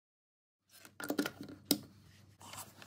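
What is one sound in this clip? A plug clicks into a socket.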